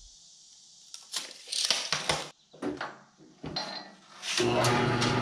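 Metal clanks and scrapes as a steel bar is handled.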